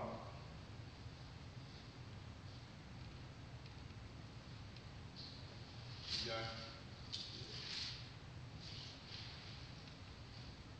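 A man reads aloud slowly in a hall with a light echo.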